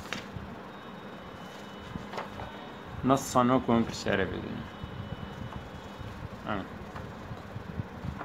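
Sheets of paper rustle as they are handled.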